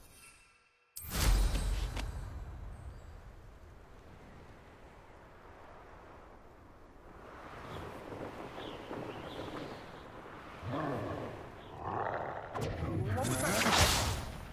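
Wind rushes loudly past a flying broom.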